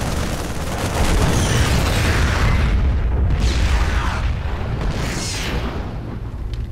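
Loud explosions boom and crackle.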